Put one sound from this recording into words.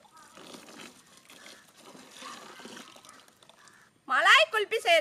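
Milk pours from a metal pot.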